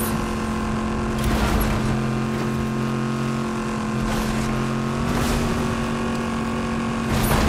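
A car engine hums steadily as a vehicle drives fast.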